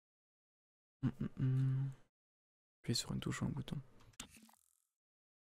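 A young man speaks briefly and casually into a microphone close by.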